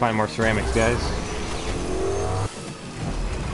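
A motorbike engine hums and revs steadily.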